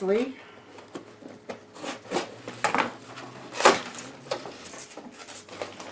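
Cardboard scrapes and rustles under a woman's hands.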